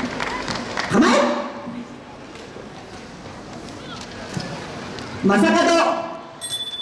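A group of young women shout together in unison.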